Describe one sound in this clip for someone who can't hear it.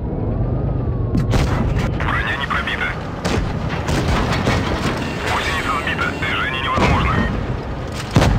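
Tank engines rumble low and steadily.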